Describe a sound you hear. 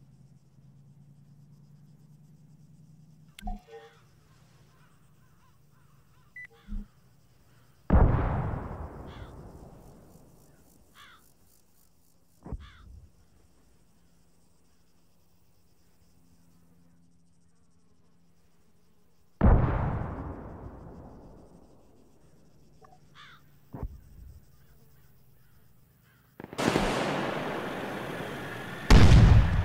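A tank engine rumbles in the distance.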